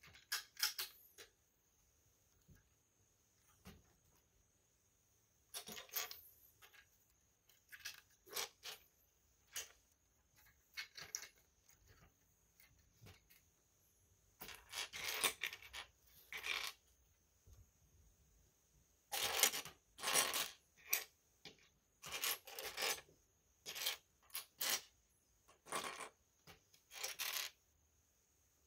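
Plastic toy bricks clatter and click as a hand sorts through them.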